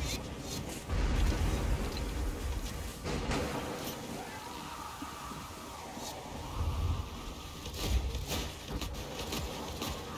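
Lightning crackles and booms.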